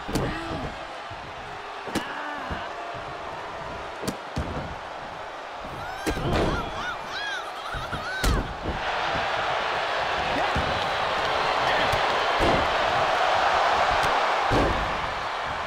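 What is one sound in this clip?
Bodies thud onto a wrestling ring mat.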